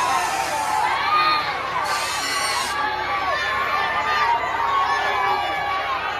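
Young men shout excitedly close by.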